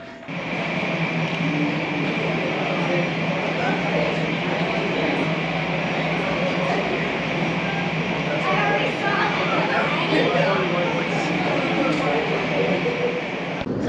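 Jet engines whine and hum steadily.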